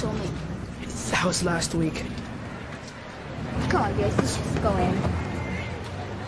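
Another teenage boy answers calmly.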